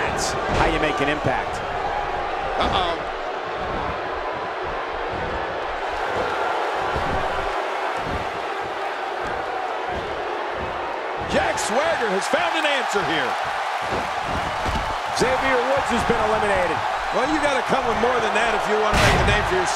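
A large crowd cheers and roars steadily in an arena.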